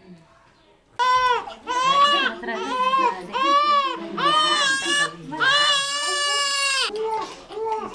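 A baby cries loudly and close by.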